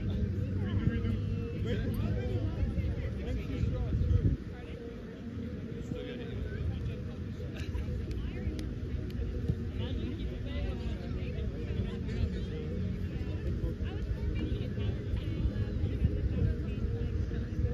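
Young men and women call out to each other in the distance.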